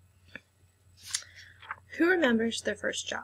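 A young woman speaks calmly into a nearby microphone.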